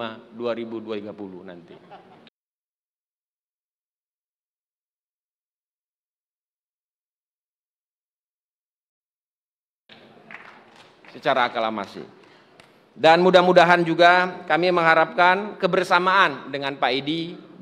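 A man speaks formally into a microphone, heard through loudspeakers.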